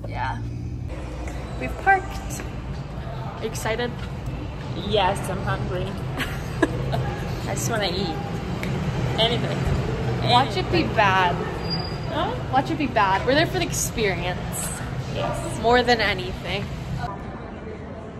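A young woman talks excitedly close to a phone microphone.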